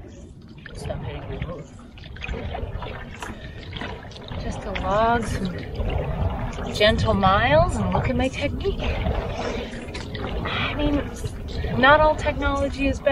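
A paddle splashes in water with each stroke.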